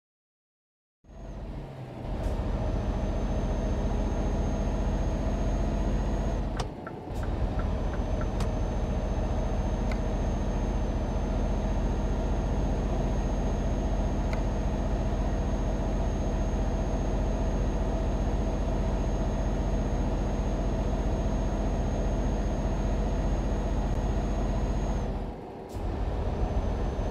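Tyres roll steadily on the road.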